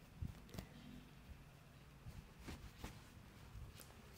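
A brush sweeps softly over a man's beard.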